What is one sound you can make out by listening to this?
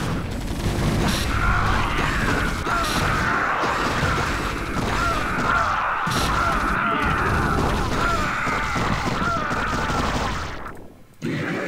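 Rapid gunfire rattles in a video game battle.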